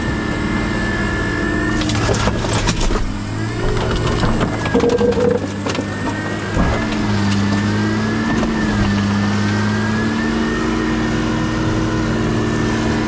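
A heavy machine engine rumbles steadily with a hydraulic whine.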